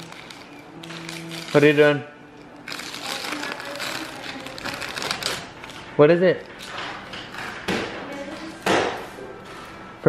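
Wrapping paper rustles and crinkles as it is torn.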